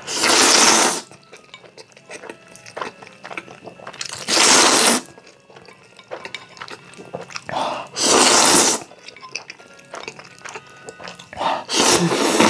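A young man loudly slurps noodles close up.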